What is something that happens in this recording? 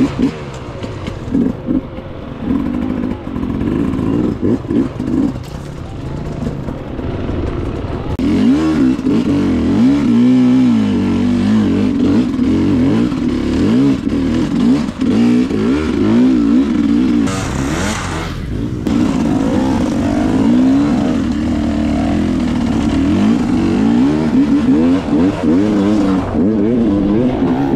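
A dirt bike engine revs and sputters up close, rising and falling in pitch.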